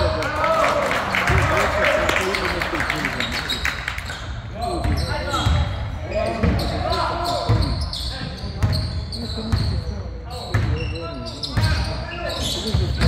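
Sneakers squeak sharply on a hard court in an echoing gym.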